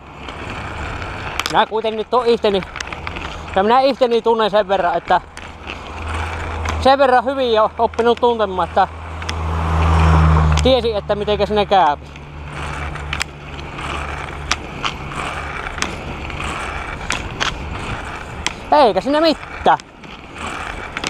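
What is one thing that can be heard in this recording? Bicycle tyres roll steadily over pavement.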